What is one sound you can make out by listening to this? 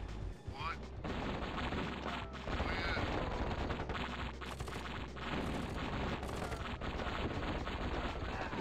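Explosions boom in a game battle.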